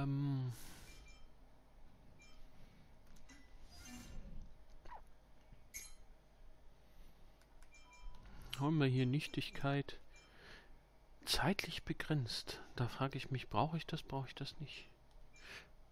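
Short soft menu blips sound as a selection moves from option to option.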